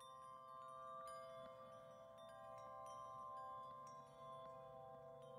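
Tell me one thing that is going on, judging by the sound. A video game plays steady background music.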